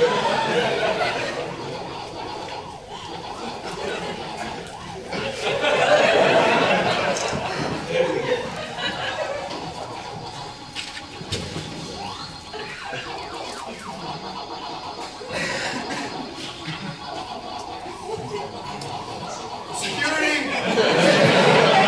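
A crowd of young people chatters and cheers loudly in an echoing hall.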